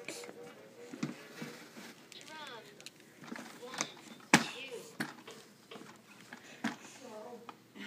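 A baby's hands slap and tap a plastic toy.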